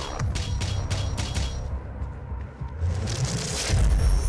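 Heavy footsteps thud on a metal floor.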